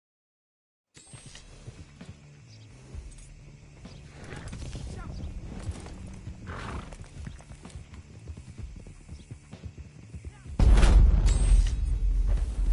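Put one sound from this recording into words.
Horses' hooves thud on grass at a gallop.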